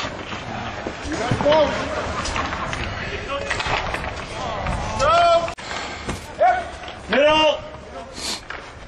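Young men shout across an open rink.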